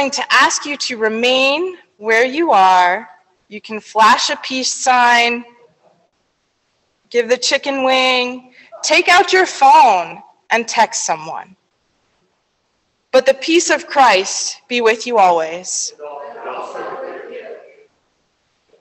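A woman speaks calmly into a microphone in an echoing hall.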